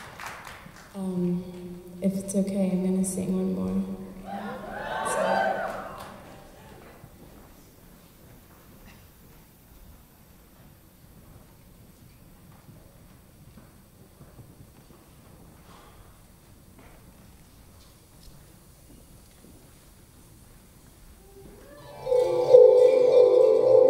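A stringed instrument is played through loudspeakers.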